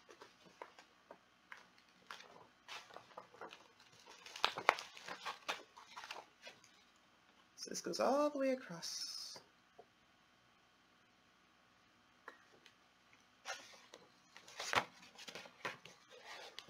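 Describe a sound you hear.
Pages of a book rustle and flap as they are handled.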